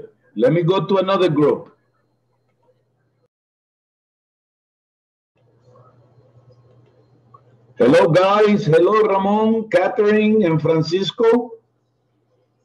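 A middle-aged man talks with animation over an online call.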